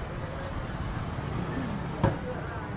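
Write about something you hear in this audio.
A pickup truck drives by close.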